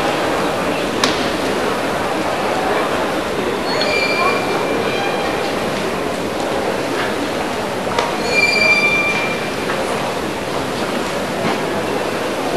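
A karate uniform snaps sharply with quick strikes.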